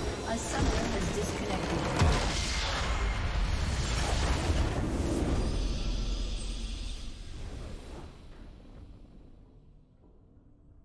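Game spell effects and explosions crash and rumble loudly, then fade away.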